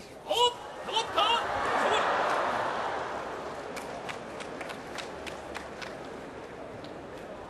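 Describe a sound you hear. A large crowd roars and cheers in a big echoing hall, then the roar slowly fades.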